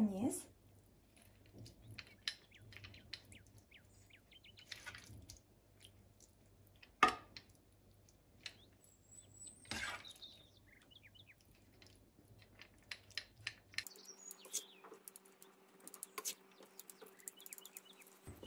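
A spoon plops soft food into a glass dish and scrapes it flat.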